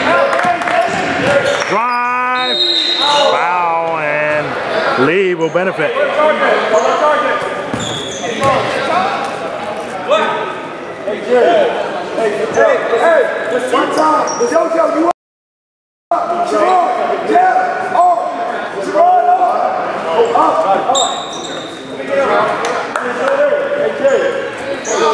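Spectators talk and shout in a large echoing hall.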